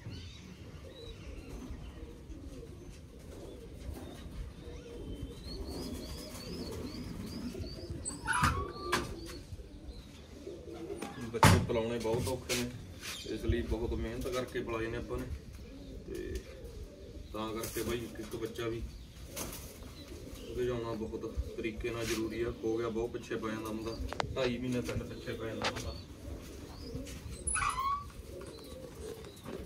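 Pigeons coo softly.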